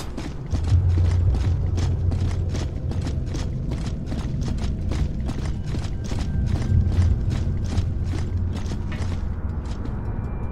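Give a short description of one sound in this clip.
Heavy armoured footsteps thud quickly on stone.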